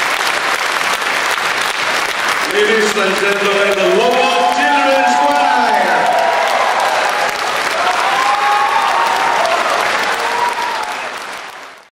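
An audience applauds and cheers loudly.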